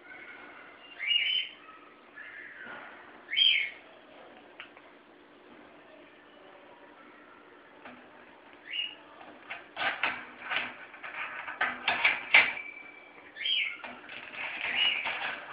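A parrot whistles and squawks in short bursts.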